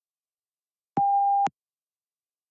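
A short electronic beep sounds once.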